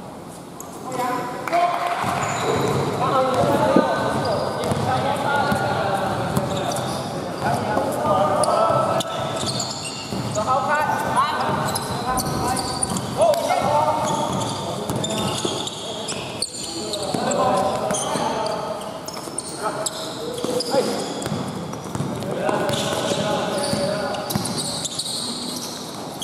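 Young players shout and call out across a large echoing hall.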